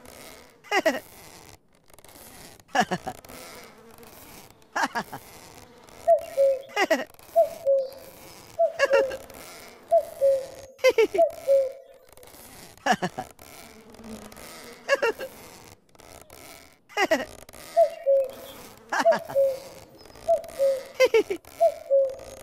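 A cartoon game plays a falling whistle effect again and again.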